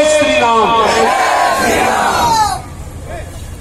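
A crowd of men cheers and shouts loudly.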